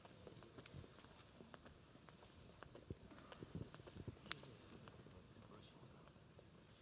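Footsteps knock on a wooden stage in a large echoing hall.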